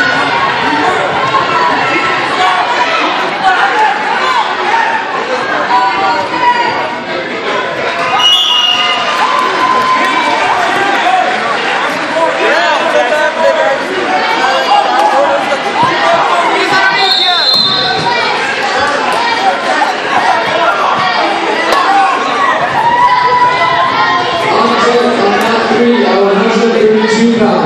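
Many people talk and cheer in a large echoing hall.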